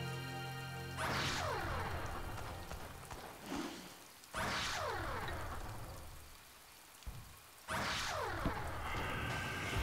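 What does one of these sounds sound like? Heavy cannon shots boom at intervals, each with a falling rumble that trails off.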